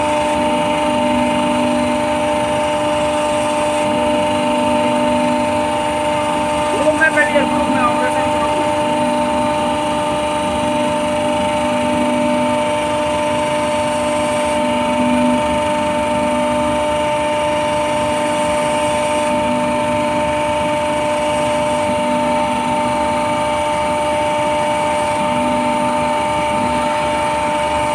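Machinery hums loudly and steadily.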